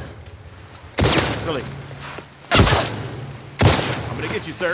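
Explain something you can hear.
A gun fires sharply several times, close by.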